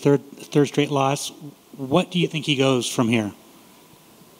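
A middle-aged man speaks into a microphone in a calm, matter-of-fact way.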